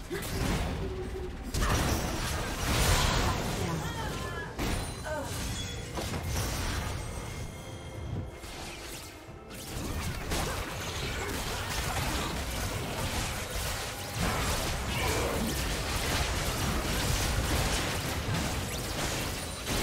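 Spell effects and hits crackle and boom during a video game battle.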